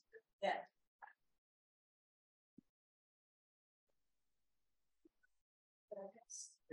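A young woman speaks in short bursts, heard through a laptop microphone.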